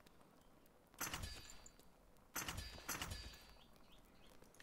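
A game menu chimes as an item is crafted.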